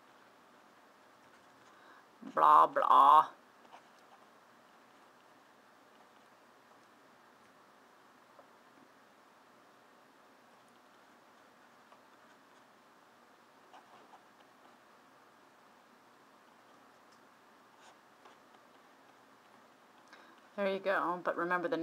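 A marker squeaks faintly as it writes on a board.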